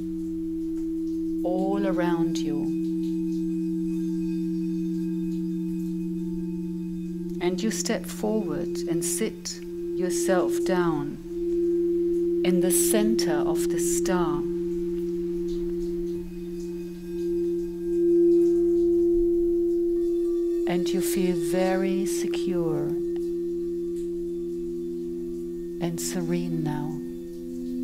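Crystal singing bowls ring with steady, humming tones.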